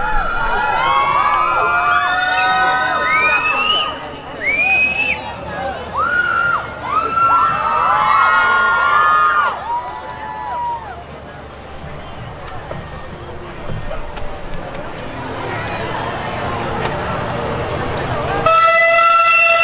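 Music with a gliding, wavering melody plays through outdoor loudspeakers.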